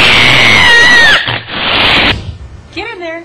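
A cat yowls loudly close by.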